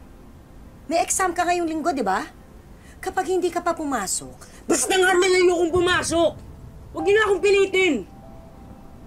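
A woman speaks nearby in an upset, pleading voice.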